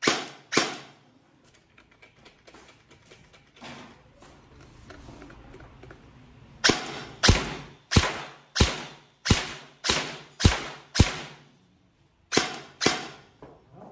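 Gunshots bang out one after another, echoing sharply.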